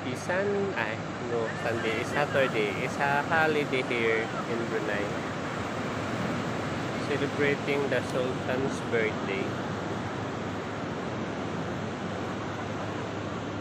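Small waves break and wash up onto a sandy shore.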